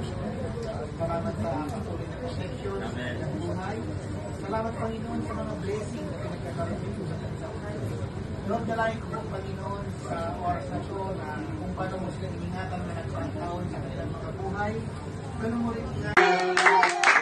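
A group of people sings together in a room.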